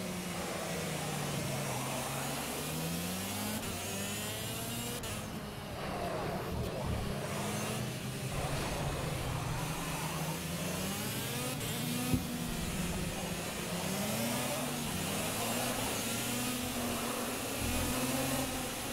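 A kart engine buzzes and revs up and down throughout.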